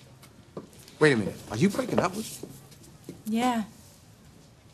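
A man speaks in a low, tense voice close by.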